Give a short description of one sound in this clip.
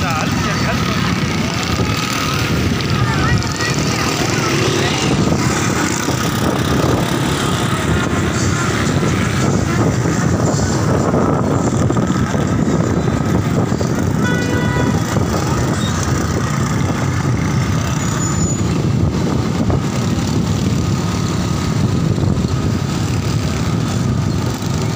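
Motorcycle engines rumble and putter nearby.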